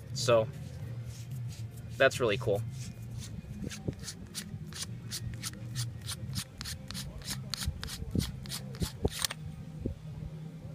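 A metal cap unscrews with quick faint clicks.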